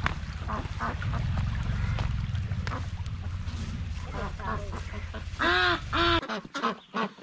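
Water flows and gurgles in a shallow stream.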